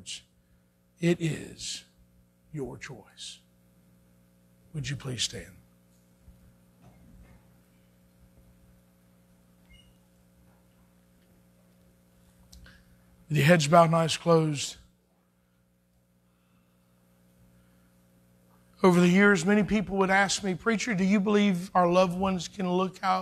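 A middle-aged man speaks calmly into a microphone in a large echoing room, heard in short bursts with pauses.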